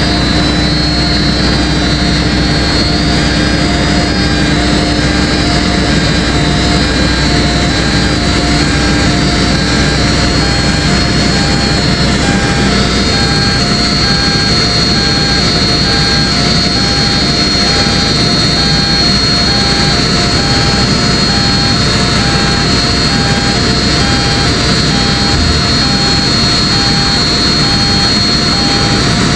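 Steel crawler tracks clank and squeal over gravel.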